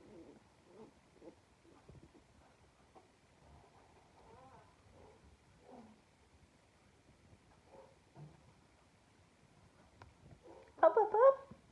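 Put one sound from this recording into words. A young puppy whimpers in short, high cries close by.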